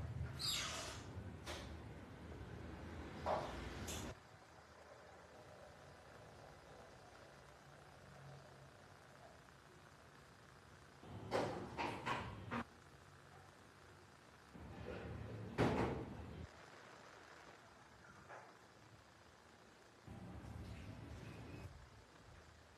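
Paper pages rustle and turn.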